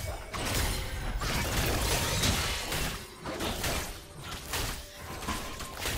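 Video game spell and combat effects crackle and whoosh in quick bursts.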